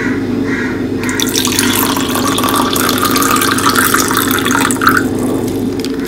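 Water pours from a metal bowl into a plastic cup.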